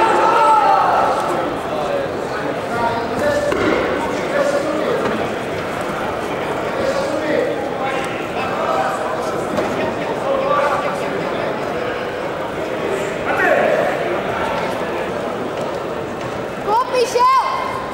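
A crowd of spectators shouts and calls out in a large echoing hall.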